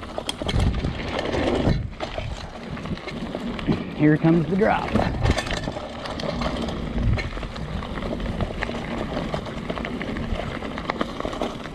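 Bicycle tyres roll fast over a bumpy dirt trail.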